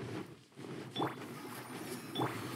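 A sword swishes through the air with a magical whoosh.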